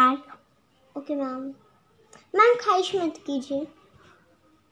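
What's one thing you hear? A young girl speaks up close in short phrases.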